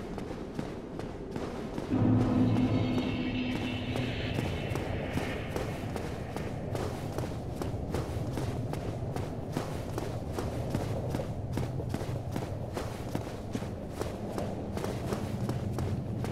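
Armoured footsteps run steadily over stone.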